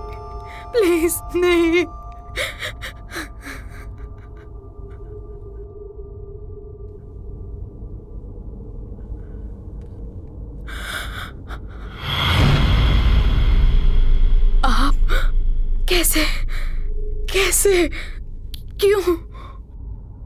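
A young woman speaks tearfully and close by.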